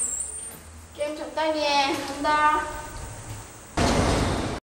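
A young woman speaks briefly with animation.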